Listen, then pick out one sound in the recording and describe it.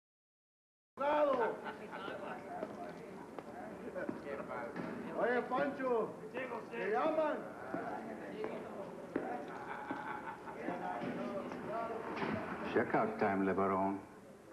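A middle-aged man speaks calmly and steadily.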